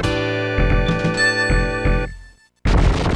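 A cheerful electronic victory tune plays briefly.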